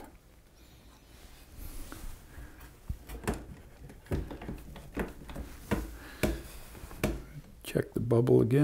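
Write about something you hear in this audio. Light knocks and taps sound as hands handle wooden boards.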